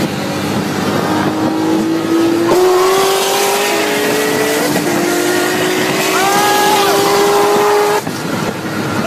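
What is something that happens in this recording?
A car engine revs hard, rising in pitch.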